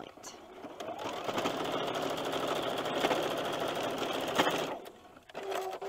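A sewing machine runs at a steady fast stitch.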